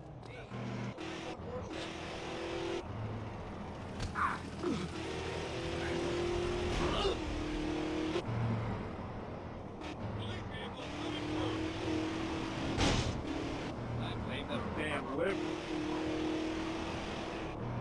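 Car tyres screech on the road while turning.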